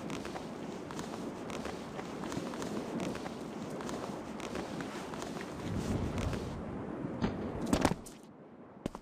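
A figure climbs, hands scraping and gripping on stone.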